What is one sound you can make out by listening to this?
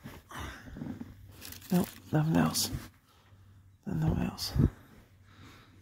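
A hand rubs against fabric upholstery with a soft brushing sound.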